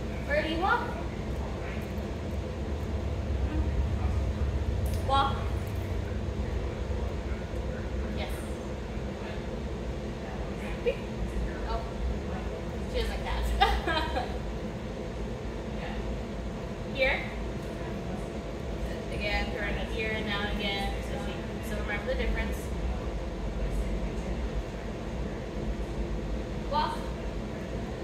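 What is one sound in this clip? A young woman speaks calmly and encouragingly to a dog.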